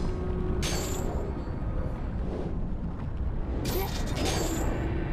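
A glowing magical orb whooshes and shimmers in two bright bursts.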